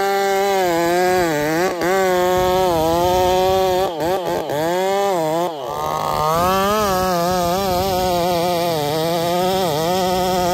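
A chainsaw engine roars loudly, its pitch rising and dipping as it cuts.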